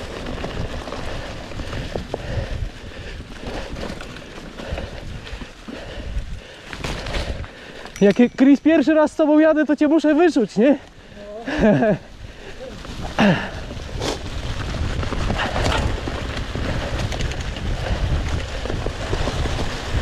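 A bicycle rattles and knocks over bumps.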